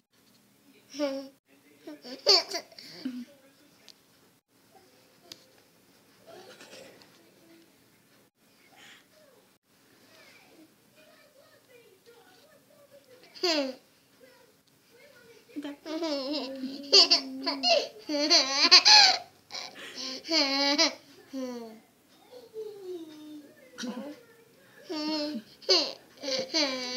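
A small child chatters and squeals playfully close by.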